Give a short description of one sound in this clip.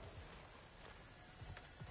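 Footsteps thud softly on the ground.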